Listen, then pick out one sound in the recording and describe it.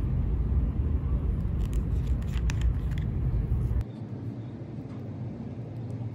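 A plastic cap is twisted off a small bottle.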